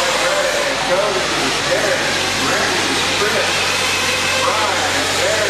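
Small electric motors whine and rise and fall in pitch as toy race cars speed around a track in a large echoing hall.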